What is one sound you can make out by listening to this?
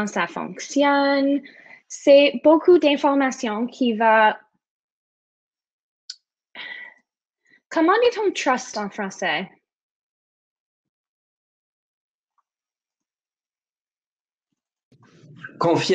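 A young woman talks calmly through a microphone, with pauses.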